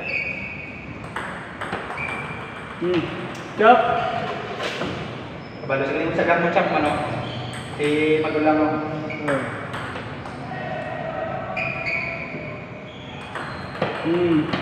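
A ping pong ball clicks back and forth on paddles and a table.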